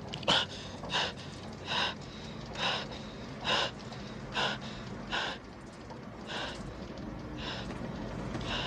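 A young man pants and gasps rapidly, close by.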